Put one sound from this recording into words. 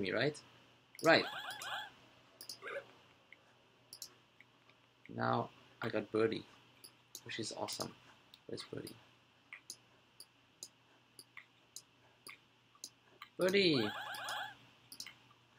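Short electronic game chimes play.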